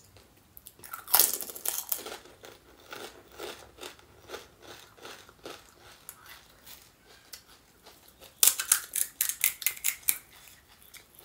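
Crisp hollow shells crack and crunch loudly, close up.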